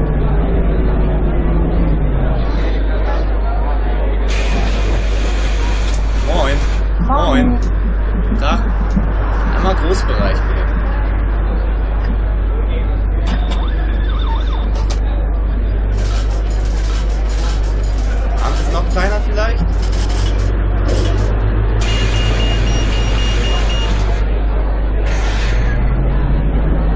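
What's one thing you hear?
A bus engine hums and idles steadily.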